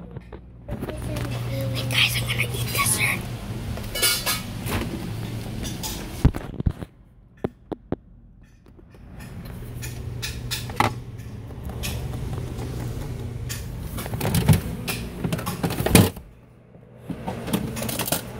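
Handling noise rustles and knocks close by.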